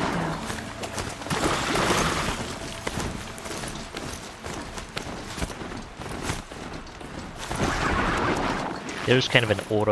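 Hooves clatter on rocky ground at a gallop.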